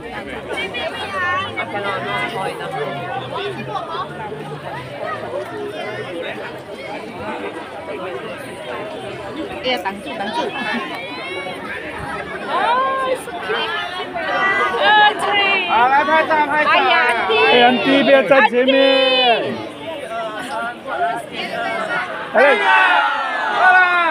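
A large crowd chatters and calls out nearby.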